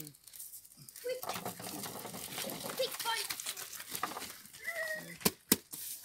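Mushrooms tumble into a crate with a soft rustling patter.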